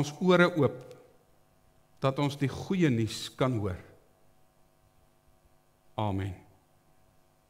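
A middle-aged man speaks calmly through a headset microphone, in short phrases with pauses.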